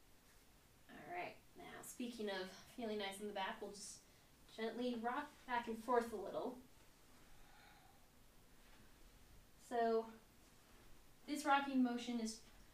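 A young woman speaks calmly, as if giving instructions.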